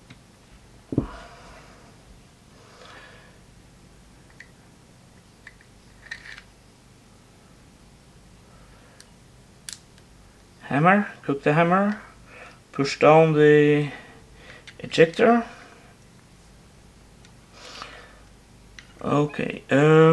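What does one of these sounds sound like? Small metal parts click and snap together.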